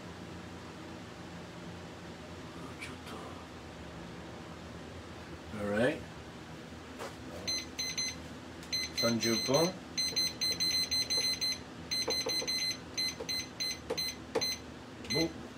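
Batter sizzles softly in a frying pan.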